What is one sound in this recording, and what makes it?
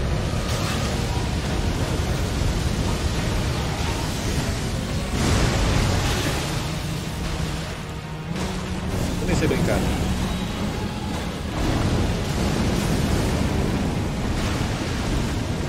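Fire roars and bursts loudly.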